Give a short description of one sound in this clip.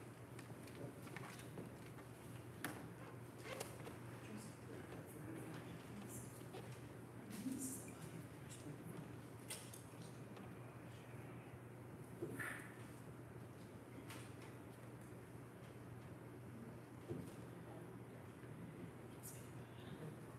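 Small objects click and rustle as they are handled.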